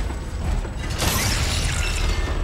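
Metal armour clanks as a figure lurches forward.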